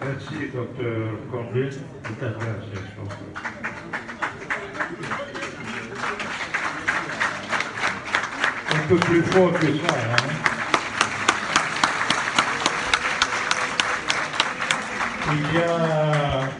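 A crowd cheers and chatters loudly.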